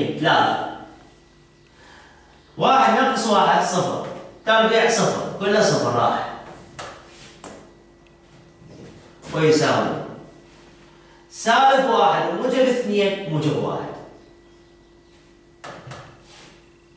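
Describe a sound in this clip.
A man speaks clearly and explains in bursts, close by.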